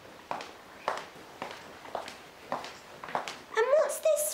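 Footsteps tap along a hard floor.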